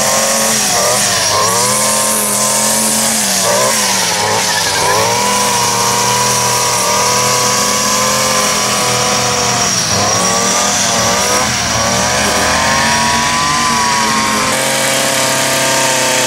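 A string trimmer engine whines loudly and rises and falls in pitch.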